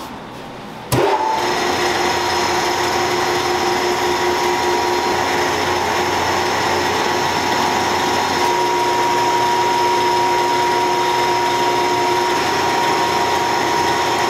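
A machine hums loudly and steadily.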